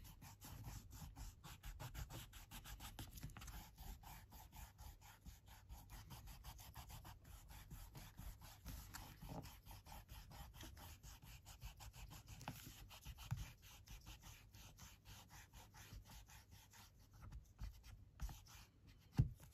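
An eraser rubs quickly back and forth on paper.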